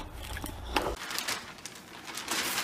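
A newspaper rustles and crinkles.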